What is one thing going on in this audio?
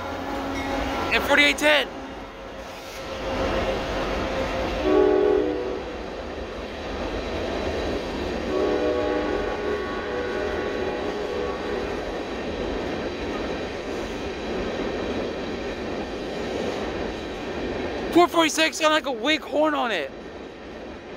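Train wheels squeal sharply on the rails.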